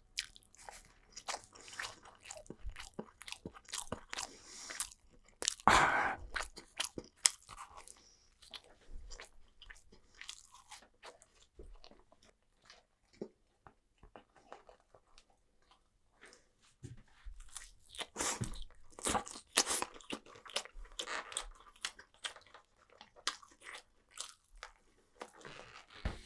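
A person chews crunchy food close to a microphone.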